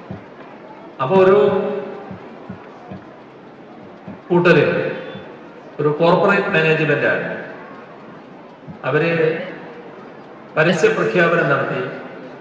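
An older man speaks slowly and forcefully into a microphone, in bursts with pauses, echoing through loudspeakers.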